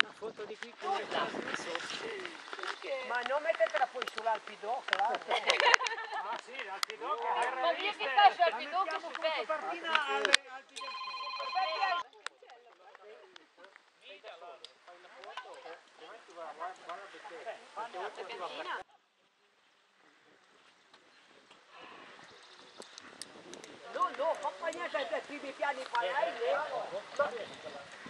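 Several men and women chat casually outdoors.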